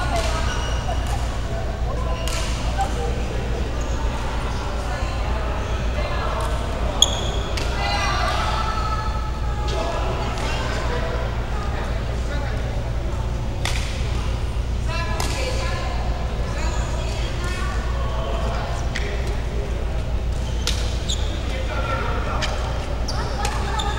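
Rackets strike a shuttlecock with sharp pops in a large echoing hall.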